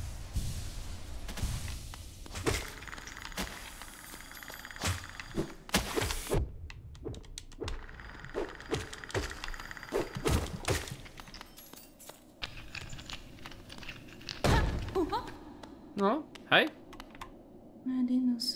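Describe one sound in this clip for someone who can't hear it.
Sharp slashing hits and thuds ring out in quick bursts.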